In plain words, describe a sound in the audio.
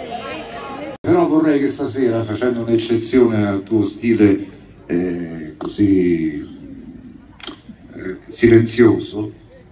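A man sings through loudspeakers at an outdoor concert.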